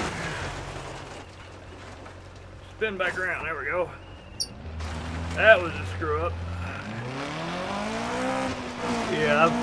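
A car engine hums low and then revs up, rising in pitch.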